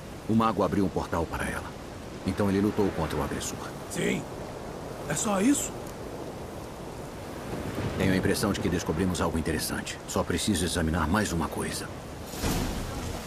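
A man speaks calmly in a low, gruff voice.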